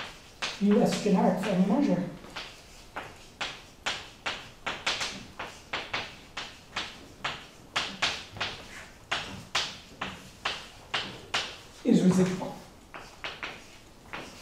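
Chalk taps and scrapes on a blackboard in quick, steady strokes.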